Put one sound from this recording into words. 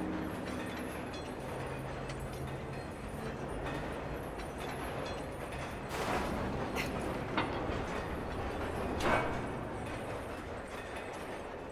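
A metal chain rattles as a wooden crane swings.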